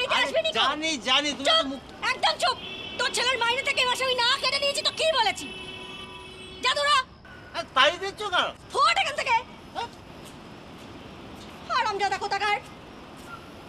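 A woman shouts angrily close by.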